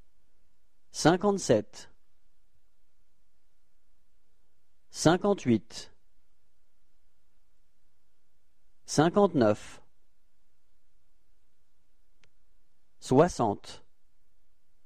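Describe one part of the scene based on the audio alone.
A young man speaks short phrases calmly and closely.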